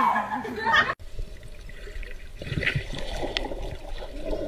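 Water rumbles and bubbles, heard muffled underwater.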